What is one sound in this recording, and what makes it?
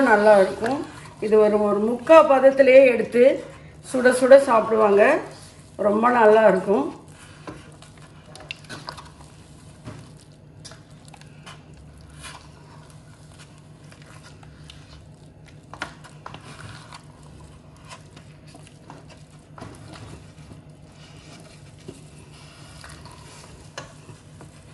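A wooden spoon stirs and squelches through thick batter in a metal pot.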